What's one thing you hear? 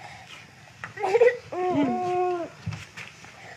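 A baby squeals and giggles loudly close by.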